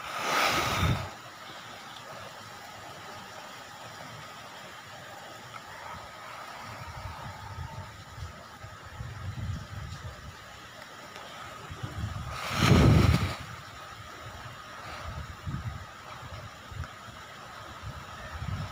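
Wind gusts against the microphone.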